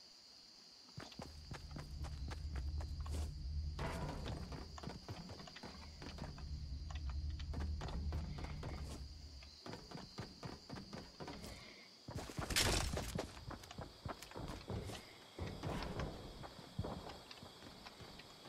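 Footsteps clatter quickly on a metal floor.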